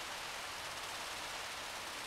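Water hisses from a fire hose.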